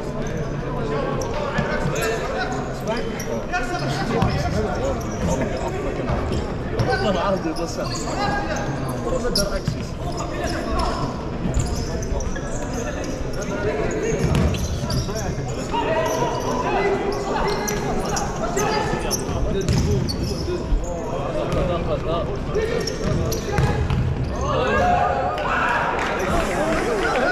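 A ball thumps off feet and the floor.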